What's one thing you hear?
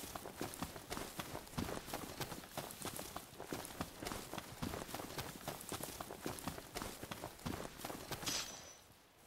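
Footsteps run quickly through rustling grass.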